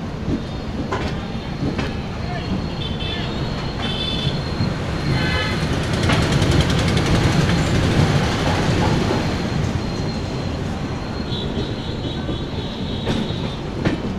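A train rumbles and clatters steadily over the rails.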